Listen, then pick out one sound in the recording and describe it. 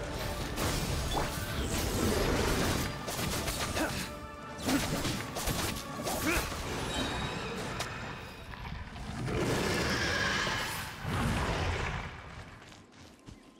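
Heavy blows, crashes and crackling bursts sound in a busy fight.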